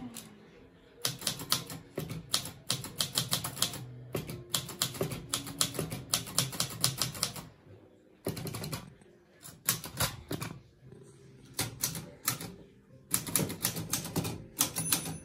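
A manual typewriter clacks in quick bursts of keystrokes close by.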